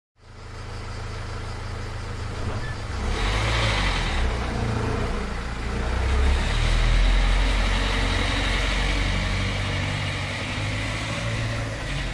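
A car engine hums and revs as the car pulls away.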